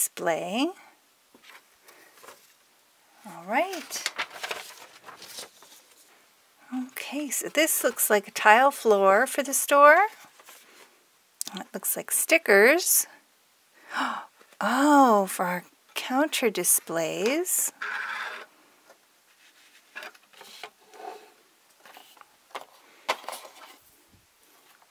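Paper sheets rustle and flap as they are handled.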